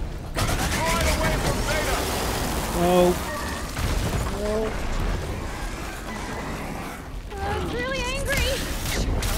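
Loud blasts and crashing debris burst out with heavy rumbling.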